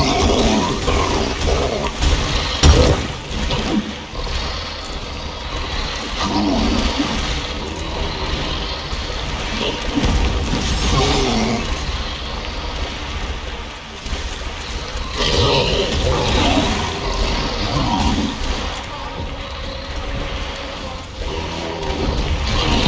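A sword slashes and strikes a creature.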